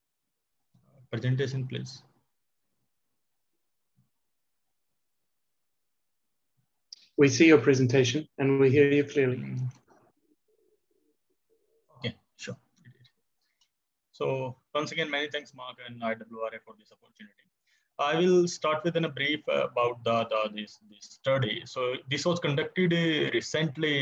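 A young man speaks calmly through an online call microphone, with pauses.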